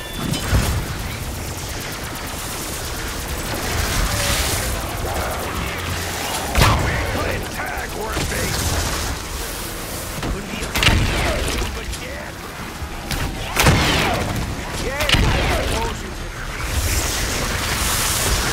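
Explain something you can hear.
Electric energy crackles and booms in explosions.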